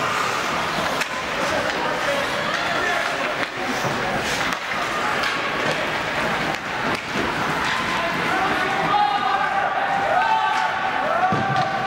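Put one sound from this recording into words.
Skates scrape across the ice in an echoing rink.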